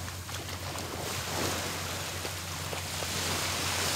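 A man wades and splashes through shallow water.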